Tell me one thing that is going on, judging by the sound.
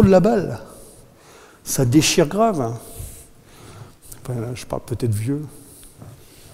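A middle-aged man speaks with animation in a large room.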